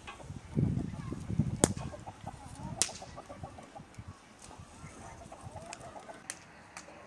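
Hens cluck and peck outdoors.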